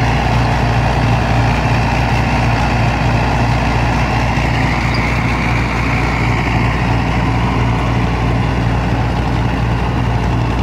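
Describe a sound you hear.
A tractor engine runs with a steady low rumble.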